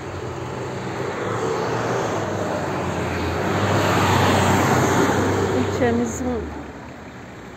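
A van drives past on a road.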